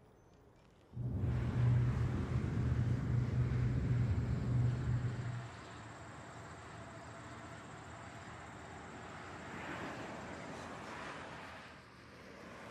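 A car engine rumbles loudly as it drives past.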